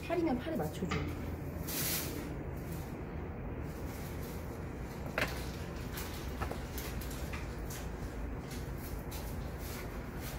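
Wet clay squelches and scrapes under hands and a trimming tool.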